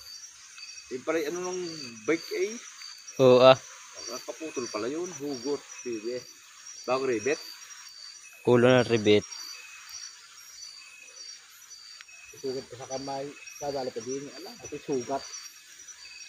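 A young man talks casually nearby, in short bursts.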